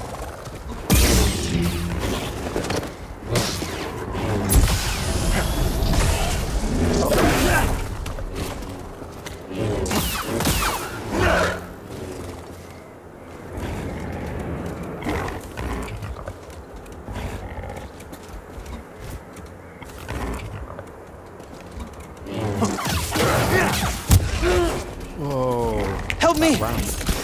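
A blade strikes creatures with sharp sizzling hits.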